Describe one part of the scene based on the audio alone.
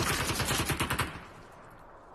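A rapid-fire gun shoots in a fast burst.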